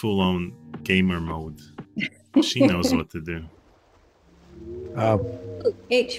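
A woman talks and laughs through an online call.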